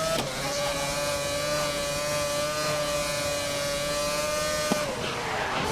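A racing car engine screams at high revs, holding steady and then dropping in pitch as it slows.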